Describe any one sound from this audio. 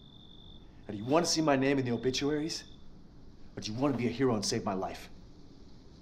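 A man talks back.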